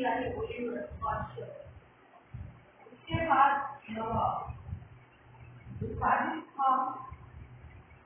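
An elderly woman speaks calmly and clearly.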